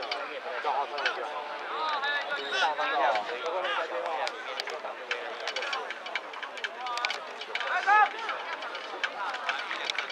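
A crowd of young men shouts and cheers outdoors nearby.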